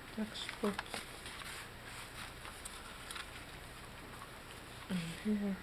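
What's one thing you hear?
Paper pages rustle and flip as they are turned by hand.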